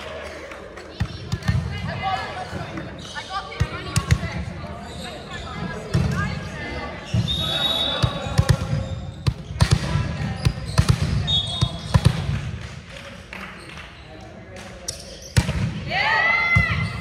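A volleyball thuds off hands and arms.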